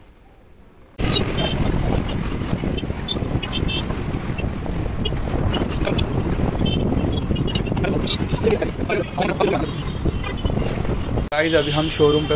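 A motorcycle engine hums while riding along a road.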